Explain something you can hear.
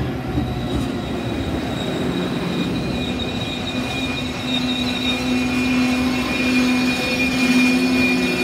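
Train wheels squeal and whine on the rails.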